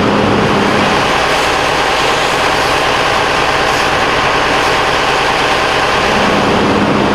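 A fire hose sprays water with a loud hiss.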